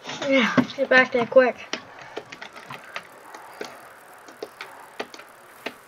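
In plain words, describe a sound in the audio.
A bicycle rolls along a road.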